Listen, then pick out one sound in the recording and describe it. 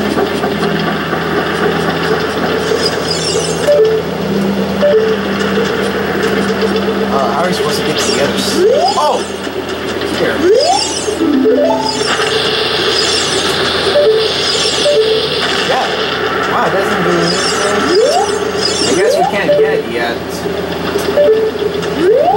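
Video game music plays steadily with a looping melody.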